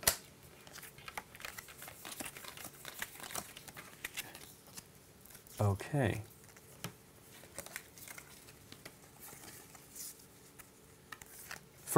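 Playing cards rustle and tap on a table.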